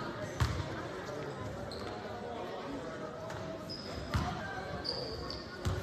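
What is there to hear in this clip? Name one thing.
A basketball bounces on a wooden court in a large echoing gym.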